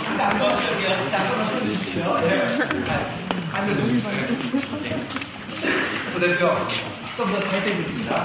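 Several people talk at a distance.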